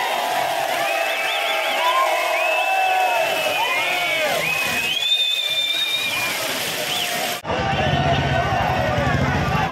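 A large crowd of men cheers and shouts outdoors.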